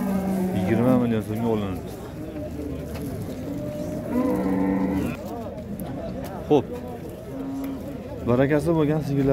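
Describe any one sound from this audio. Men talk nearby in a busy crowd outdoors.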